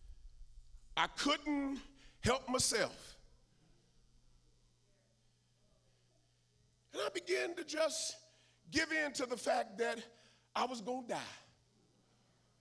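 A man preaches with animated, forceful bursts into a microphone in a large echoing hall.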